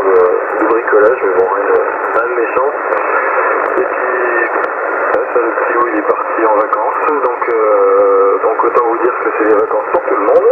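Static crackles and clicks from a radio loudspeaker.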